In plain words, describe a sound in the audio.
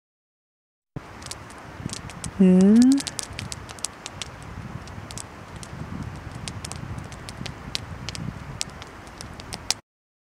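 A campfire crackles and pops close by.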